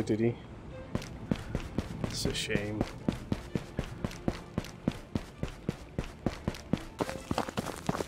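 Footsteps tap steadily on hard paving.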